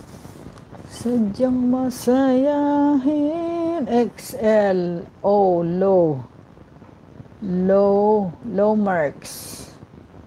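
A middle-aged woman sings close to the microphone.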